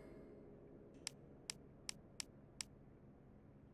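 Soft menu clicks tick in quick succession.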